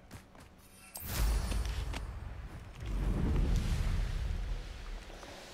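Wind rushes past a fast-flying broom.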